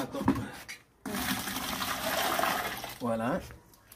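Thick liquid pours and splashes into a plastic bucket.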